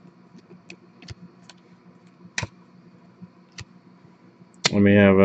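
Trading cards click and rustle as hands shuffle through them.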